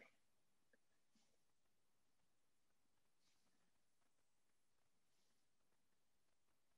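A pencil scratches softly across a ceramic surface.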